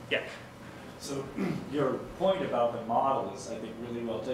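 A man speaks calmly in a large room.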